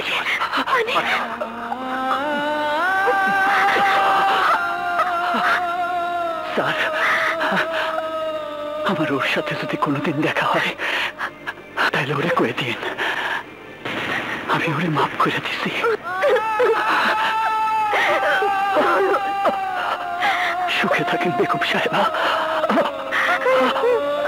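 A man sings a slow, mournful song with long held notes.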